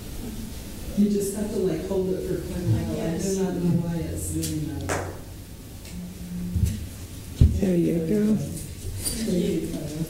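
A woman speaks calmly over a microphone in an echoing room.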